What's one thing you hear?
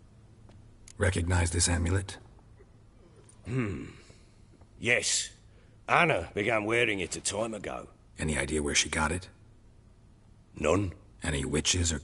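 A man with a deep, gravelly voice speaks calmly and close by.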